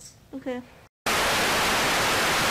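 Loud static hisses steadily.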